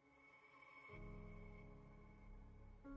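Soft music plays quietly.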